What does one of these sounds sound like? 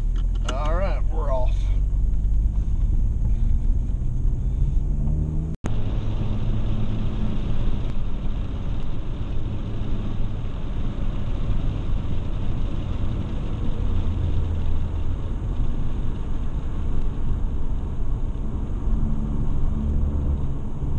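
Tyres roll on wet asphalt with a steady rushing noise.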